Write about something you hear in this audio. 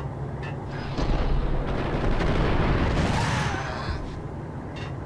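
Pistols fire a rapid burst of loud gunshots.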